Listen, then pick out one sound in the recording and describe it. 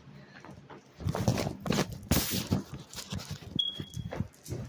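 A phone rustles and bumps as it is handled close by.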